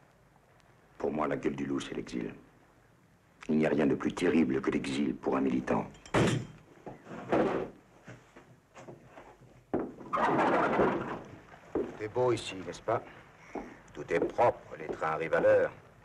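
A middle-aged man speaks in a tense, low voice close by.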